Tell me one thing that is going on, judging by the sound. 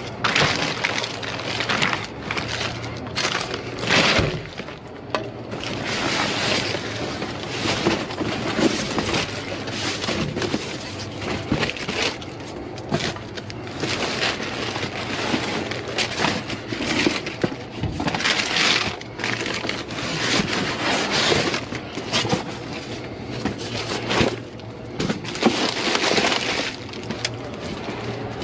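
Plastic bags and bottles crinkle and rustle as a gloved hand rummages through them.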